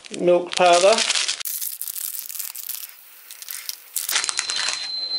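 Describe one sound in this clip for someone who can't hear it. A plastic foil sachet crinkles in a hand.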